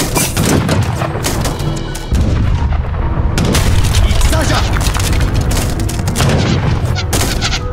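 Cannons boom and explosions thud in a battle.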